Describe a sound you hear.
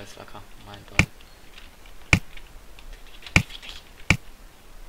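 A ball is hit with short, sharp thumps.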